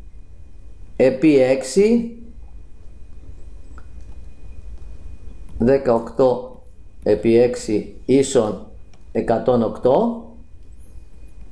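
A man speaks calmly into a close microphone, explaining in short phrases.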